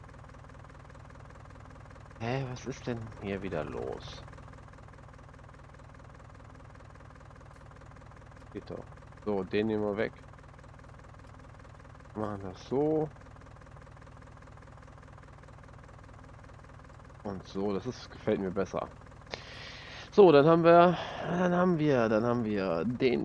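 A tractor engine idles steadily.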